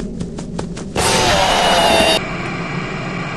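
An animatronic lets out a loud, harsh screech.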